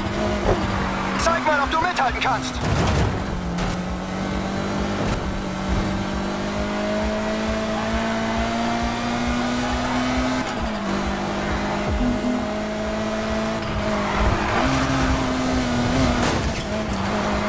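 Tyres squeal as a car slides through a corner.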